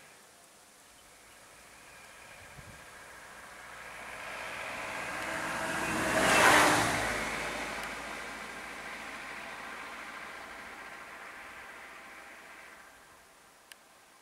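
A van engine hums as it drives slowly past close by, growing louder and then fading away.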